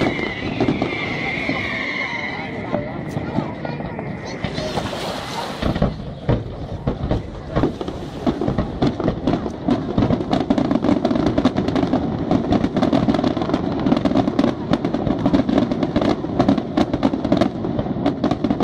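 Fireworks burst with rapid cracks and booms, echoing across open water.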